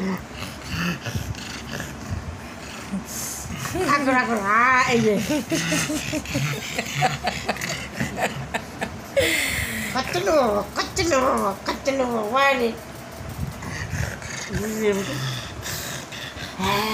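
A dog pants heavily.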